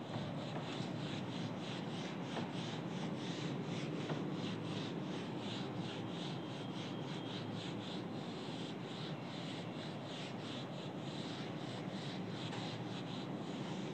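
A duster rubs and squeaks across a whiteboard.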